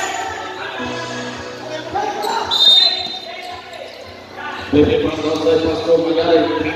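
A crowd of spectators chatters and shouts nearby, outdoors.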